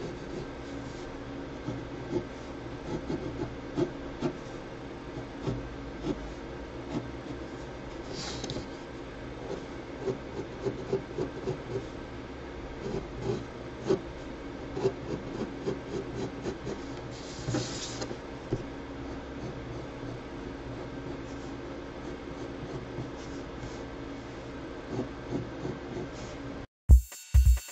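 A pencil scratches and taps lightly on paper.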